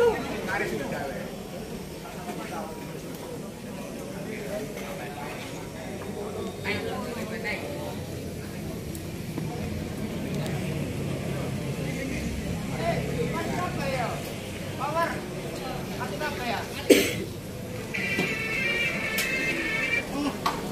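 Several men chat casually nearby outdoors.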